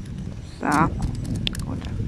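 Small plastic beads click faintly as a tool presses on them.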